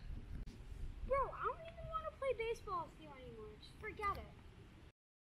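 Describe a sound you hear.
A young boy talks with animation outdoors.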